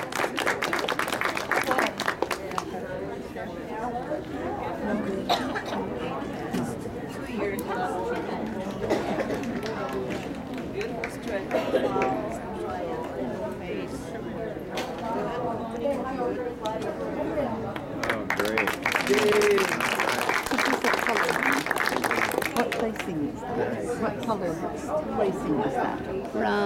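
A middle-aged woman speaks with animation to an audience.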